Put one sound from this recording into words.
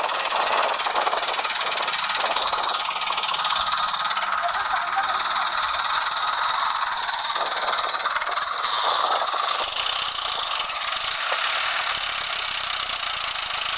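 A tractor engine roars nearby.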